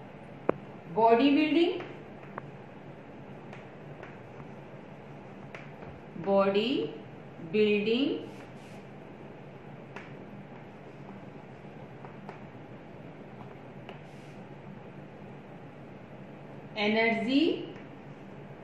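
A young woman speaks in short phrases, slowly and clearly, close by.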